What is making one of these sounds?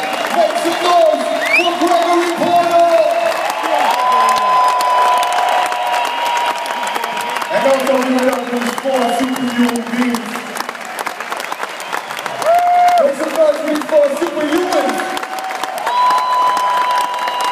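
A band plays live music through loudspeakers in a large echoing hall.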